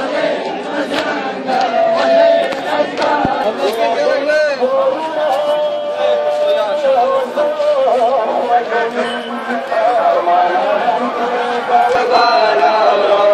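A crowd of men chants loudly together outdoors.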